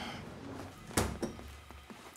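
A man's footsteps sound on a hard floor in an echoing room.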